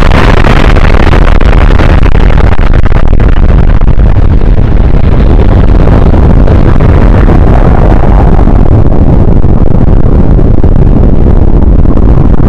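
A huge explosion roars with a deep, steady rumble.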